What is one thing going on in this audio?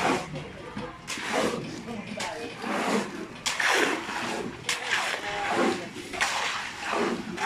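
A shovel scrapes and slaps through wet cement.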